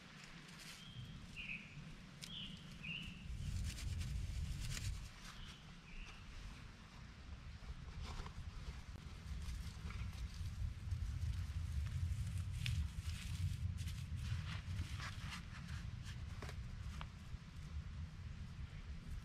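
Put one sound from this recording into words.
Dry twigs crackle and snap close by.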